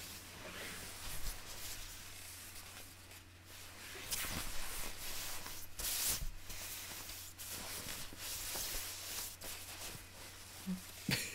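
A puffy nylon jacket rustles and swishes close by as it is handled.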